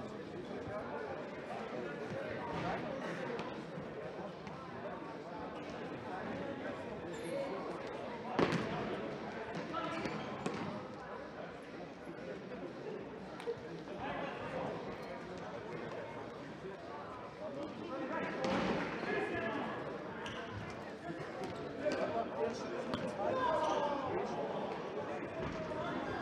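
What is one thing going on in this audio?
Players' shoes squeak on a hard indoor court.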